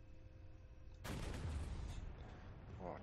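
A cannon fires with a loud blast that rumbles off.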